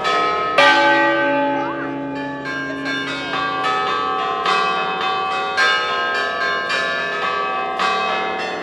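Church bells ring loudly in quick succession, each peal ringing on and overlapping the next.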